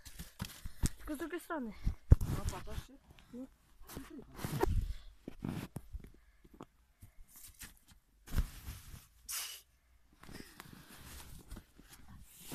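A shovel scrapes and crunches through snow.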